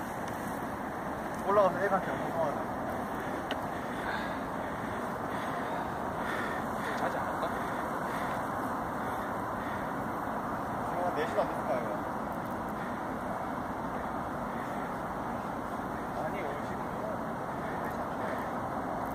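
Wind blows steadily across an open hillside.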